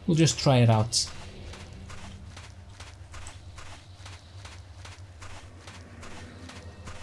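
Footsteps tap quickly and steadily on hard ground.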